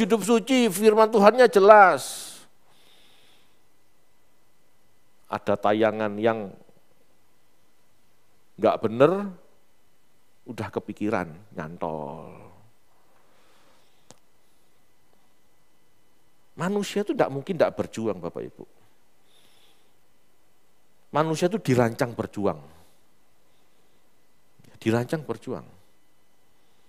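A man speaks with animation through a headset microphone, in short bursts with pauses.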